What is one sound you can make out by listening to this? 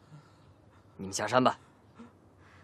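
A young man speaks sharply and tensely.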